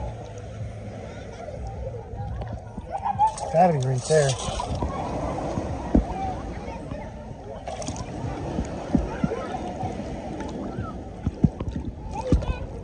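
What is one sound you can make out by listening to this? Water sloshes and splashes around wading legs.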